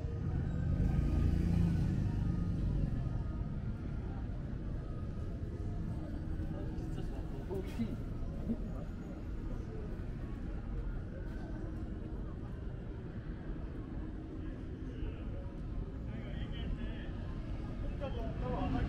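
A low outdoor street hum with distant traffic carries throughout.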